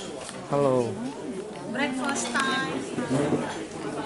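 Women talk and laugh close by.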